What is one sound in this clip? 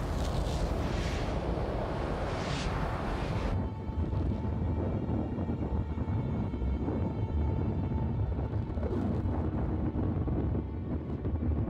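A spacecraft engine roars with a deep, rushing rumble.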